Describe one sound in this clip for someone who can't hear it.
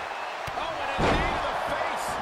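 A body slams onto a ring mat with a heavy thud.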